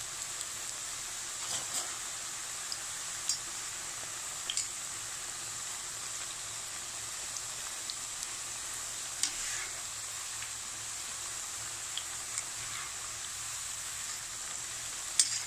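Oil sizzles and crackles steadily as food deep-fries.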